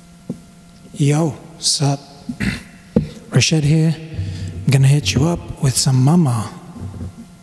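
A man speaks with animation close into a microphone.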